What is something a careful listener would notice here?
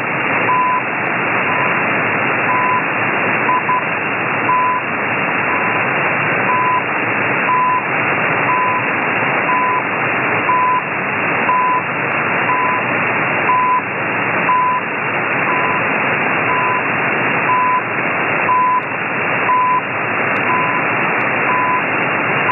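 A radio receiver hisses with loud, steady static.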